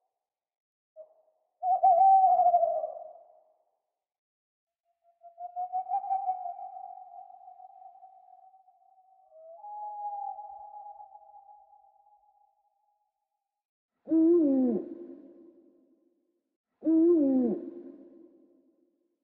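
An owl hoots and calls in repeated, drawn-out cries.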